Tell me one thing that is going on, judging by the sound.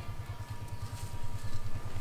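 A monkey walks over dry leaves.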